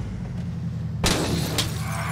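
A car crashes with a loud metallic bang.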